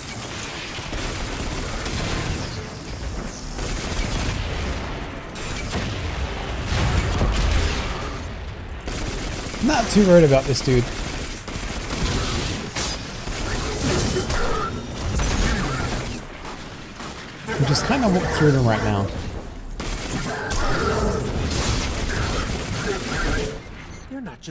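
Guns fire rapid bursts of shots.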